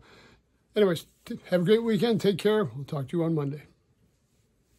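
An elderly man speaks calmly and close up.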